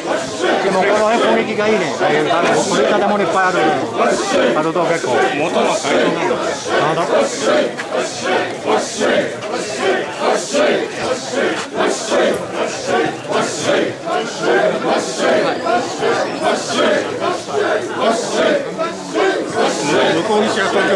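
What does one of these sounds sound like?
A crowd of men chants loudly and rhythmically close by, outdoors.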